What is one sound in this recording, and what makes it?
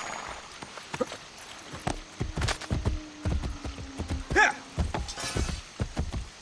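Horse hooves thud on the ground at a steady trot.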